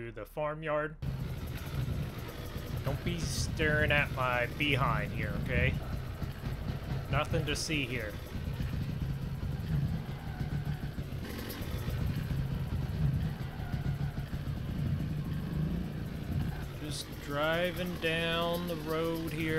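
A dirt bike engine revs and putters steadily.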